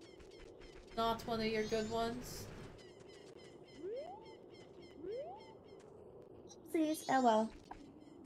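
A woman talks with animation through a microphone.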